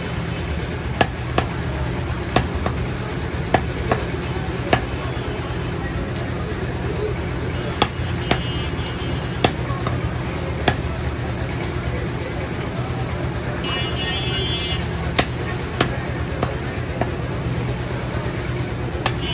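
A cleaver chops through goat meat and bone on a wooden block.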